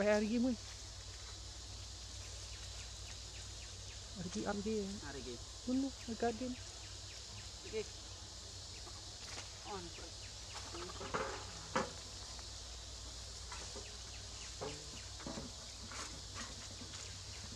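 Monkeys squeal and chatter close by.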